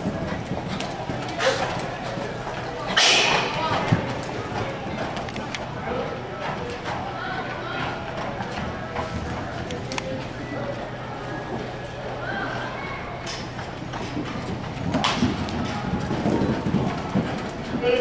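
A horse gallops with muffled hoofbeats on soft dirt.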